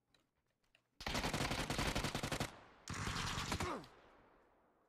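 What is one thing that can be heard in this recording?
A rifle fires rapid bursts, ringing out afterward.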